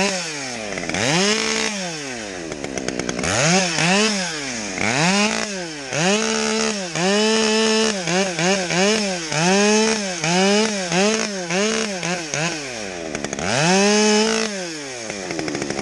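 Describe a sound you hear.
A chainsaw revs up and down in bursts.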